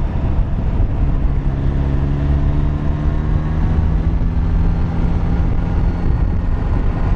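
A motorcycle engine hums steadily, rising slightly in pitch.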